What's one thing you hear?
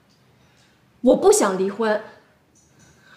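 A young woman speaks nearby in a raised, emphatic voice.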